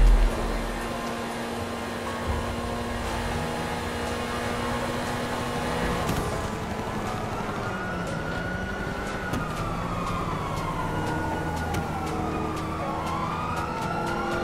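A car engine hums steadily while driving at speed.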